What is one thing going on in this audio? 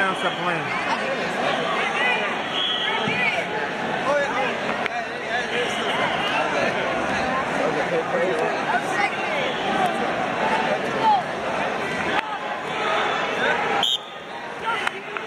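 A large crowd chatters and calls out in a big echoing hall.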